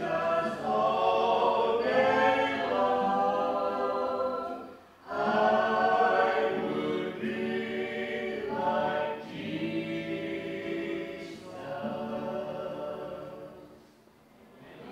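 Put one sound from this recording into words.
Several people sing together through a microphone in a large echoing hall.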